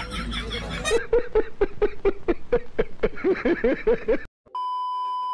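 A man laughs loudly and heartily.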